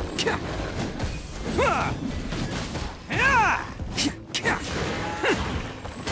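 Sword slashes whoosh and clang repeatedly.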